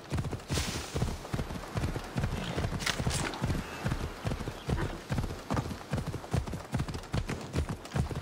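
A horse gallops with rapid, thudding hoofbeats.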